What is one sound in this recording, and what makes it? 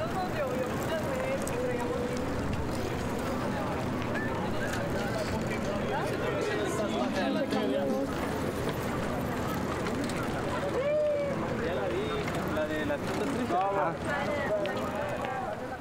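A crowd of young men and women chatter and call out nearby, outdoors.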